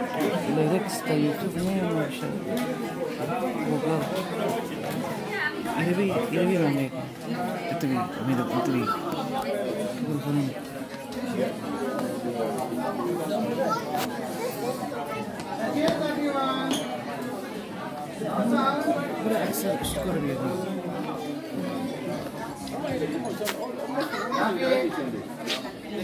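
A crowd of adults and children chatters in an echoing hall.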